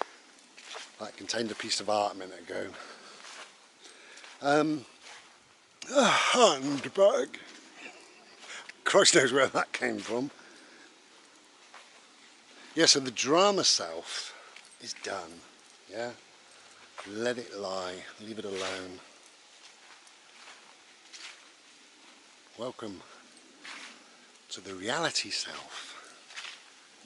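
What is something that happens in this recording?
A middle-aged man talks casually and close to the microphone, with pauses.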